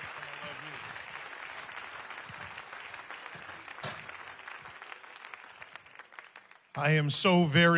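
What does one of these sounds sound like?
An audience applauds in a large hall, then fades out.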